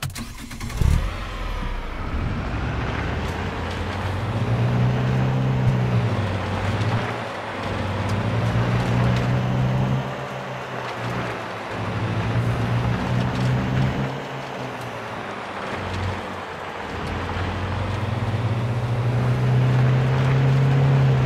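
A car engine hums and revs as it drives along.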